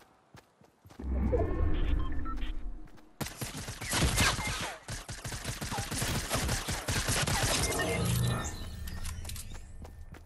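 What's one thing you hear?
Gunshots fire rapidly.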